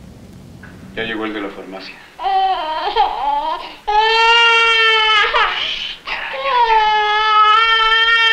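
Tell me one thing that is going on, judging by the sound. A young child calls out loudly in a high voice, close by.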